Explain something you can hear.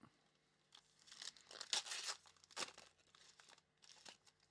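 Foil wrappers crinkle as packs are torn open.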